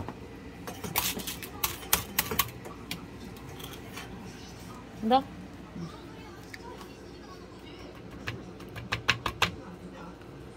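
Metal tongs clink against a small pan.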